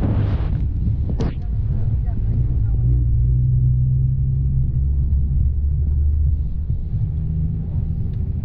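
A vehicle engine hums low and steadily while driving.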